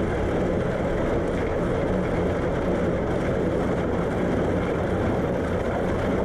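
Water splashes along the side of a moving boat.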